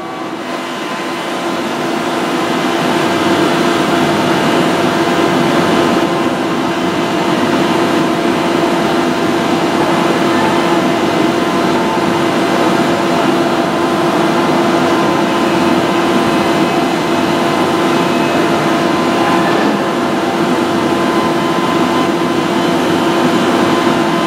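Train wheels squeal and clatter on the rails.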